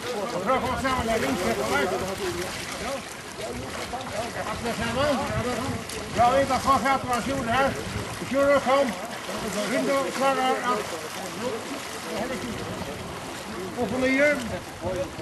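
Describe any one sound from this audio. Water splashes gently.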